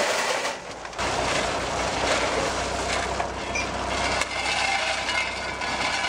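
Shovels scrape through loose gravel.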